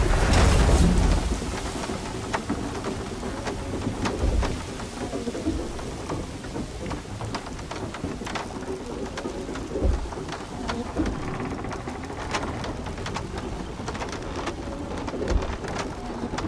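Heavy footsteps thud on wooden planks.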